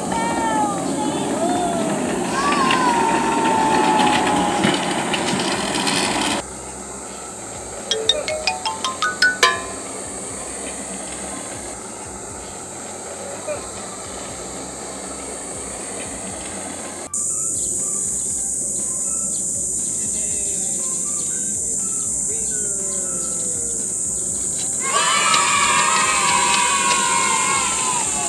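A young boy shouts with excitement.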